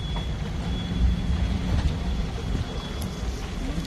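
Car engines idle in slow traffic.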